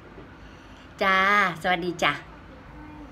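An older woman speaks into a telephone close by, with animation.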